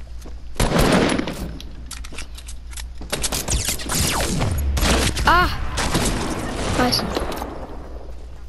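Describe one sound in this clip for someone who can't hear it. Guns fire in quick, sharp bursts.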